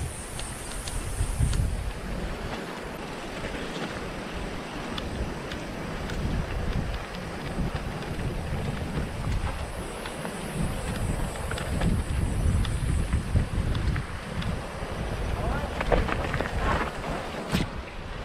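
Bicycle tyres crunch and rattle over a dirt trail.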